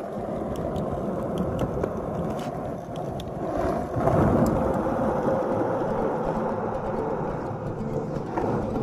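Wind blows steadily across open ground outdoors.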